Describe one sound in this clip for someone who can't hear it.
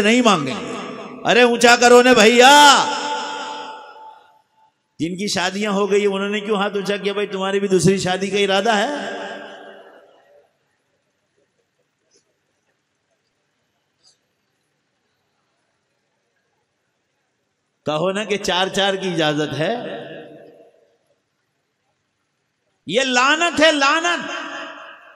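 An adult man preaches forcefully into a microphone, his voice echoing through loudspeakers.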